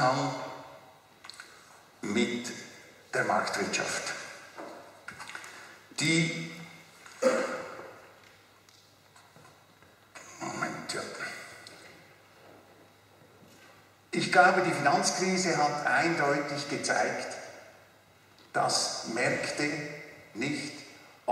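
An older man speaks into a microphone in a reverberant hall, with pauses between phrases.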